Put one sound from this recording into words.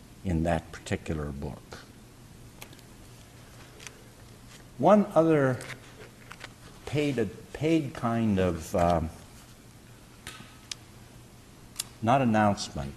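An elderly man speaks slowly and calmly through a microphone, with pauses.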